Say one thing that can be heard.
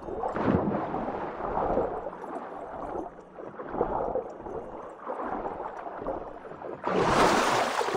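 Water gurgles and bubbles, heard muffled as if underwater.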